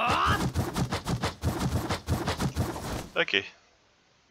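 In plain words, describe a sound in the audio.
Footsteps run quickly over dry leaves.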